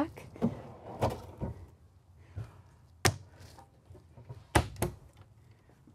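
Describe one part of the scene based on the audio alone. Cabinet doors click and thud shut.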